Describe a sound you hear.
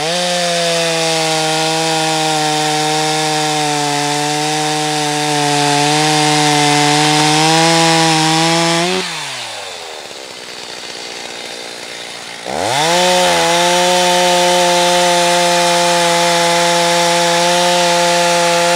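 A chainsaw cuts into dry wood.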